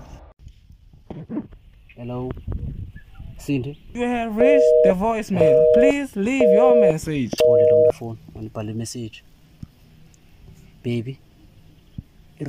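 A young man talks on a phone.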